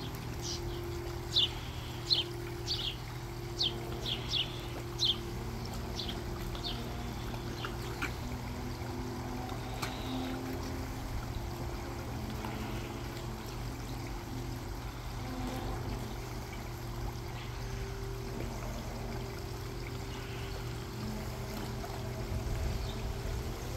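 A dog laps water at the edge of a pond.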